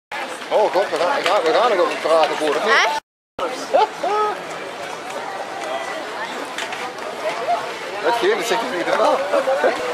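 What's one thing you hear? Men and women chatter nearby in a lively crowd.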